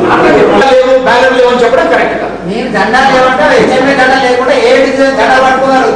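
A man speaks loudly into a microphone, heard through a loudspeaker.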